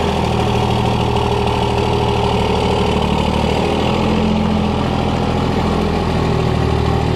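Trailer tyres crunch slowly over gravel.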